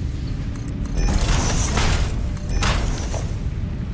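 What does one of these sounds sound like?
A heavy piece clanks into place with a whooshing burst.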